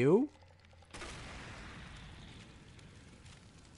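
Flames burst with a sudden loud whoosh.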